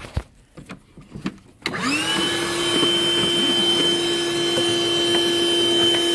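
Plastic car trim creaks and clicks as it is pried and handled.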